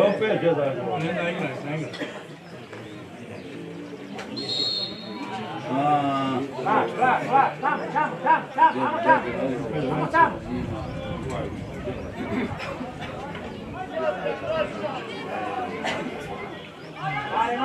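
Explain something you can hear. Football players shout to each other on an open field.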